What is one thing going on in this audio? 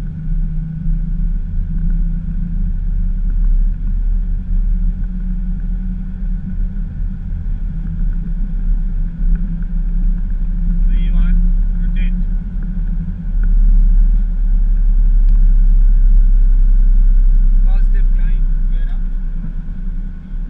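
Wheels rumble over the runway at rising speed.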